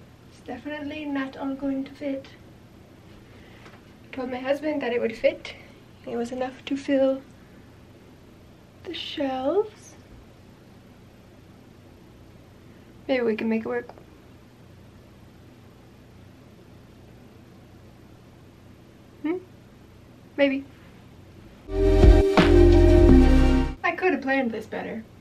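A young woman talks with animation close by, with pauses.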